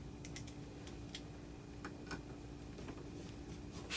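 A screwdriver squeaks and clicks as it turns a screw.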